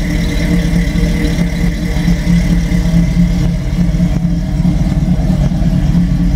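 A truck engine idles nearby with a deep, lumpy, throbbing rumble.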